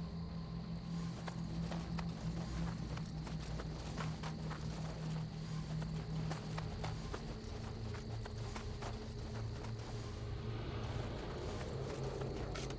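Footsteps crunch on the forest floor.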